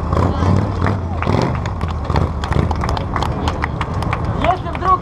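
A small crowd claps along outdoors.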